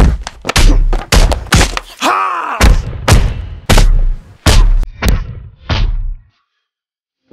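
A man shouts with excitement close to the microphone.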